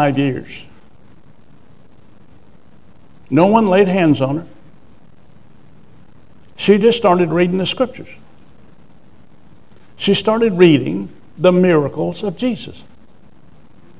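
An elderly man speaks calmly into a microphone in bursts, with pauses between phrases.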